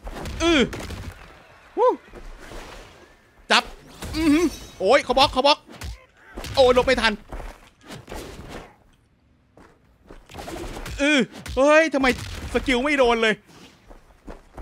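Punches and blows land with heavy thuds and smacks.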